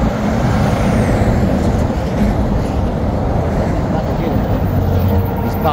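A large truck rumbles past close by.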